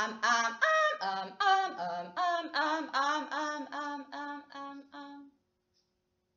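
A young woman chants in short, steady notes close by.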